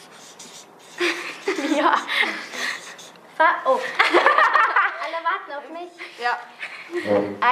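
Teenage girls laugh loudly together close by.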